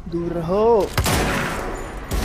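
A gun fires a loud shot that echoes.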